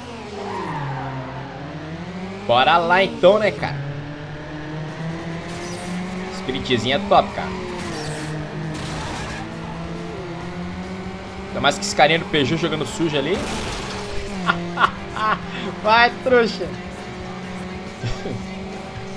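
A car engine roars and revs steadily as it races.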